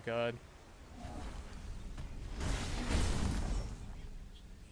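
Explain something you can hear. A magical whoosh sweeps past.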